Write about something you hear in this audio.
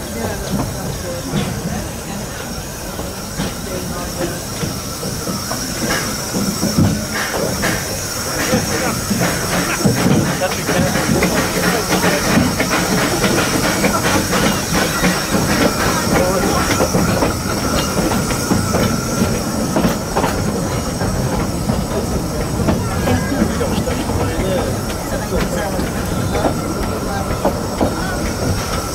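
A small steam train rumbles along the rails at a steady pace.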